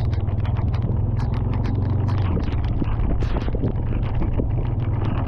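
Sleet patters and ticks rapidly nearby.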